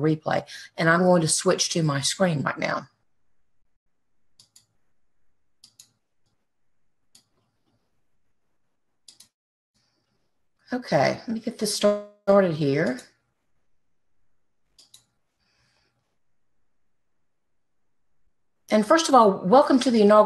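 A middle-aged woman speaks calmly and clearly into a nearby microphone, with pauses.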